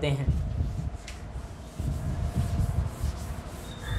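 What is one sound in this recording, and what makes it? A cloth wipes across a board.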